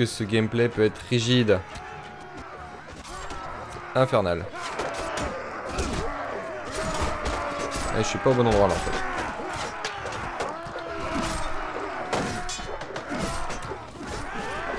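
Swords and shields clash repeatedly in a busy battle.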